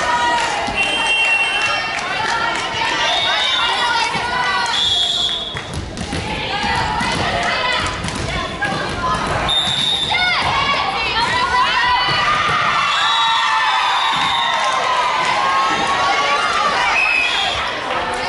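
Young women call out and shout to each other in a large echoing hall.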